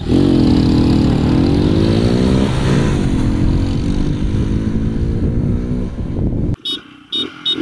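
Motorcycle engines rev loudly and pull away.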